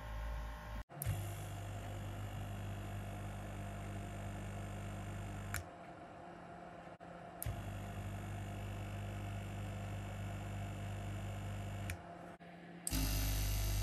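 A small air compressor runs with a steady, buzzing hum, briefly cutting out and starting again.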